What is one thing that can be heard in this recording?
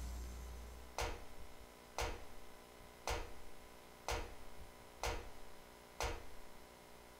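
Footsteps clank on metal stairs at an even pace.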